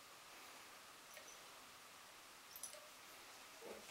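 Liquid pours from a bottle into a glass beaker.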